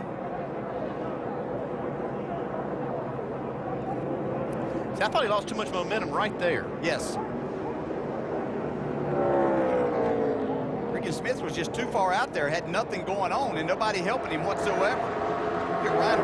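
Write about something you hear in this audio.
A pack of race car engines roars steadily around a track.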